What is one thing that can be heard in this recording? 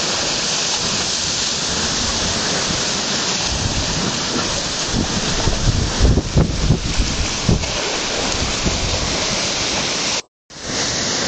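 Waves wash and splash against rocks close by.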